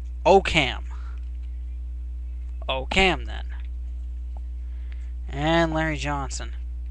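A man speaks with animation close by, in short loud bursts.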